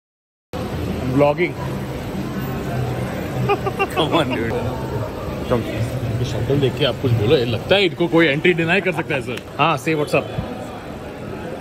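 A bearded man talks and laughs close by.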